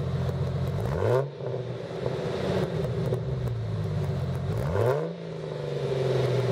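A car engine revs up briefly twice.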